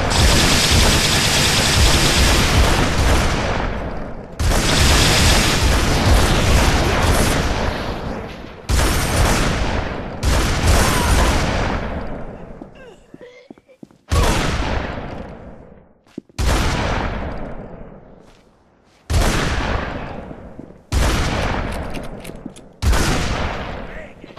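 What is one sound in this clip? Heavy gunshots boom, each with a long fading tail.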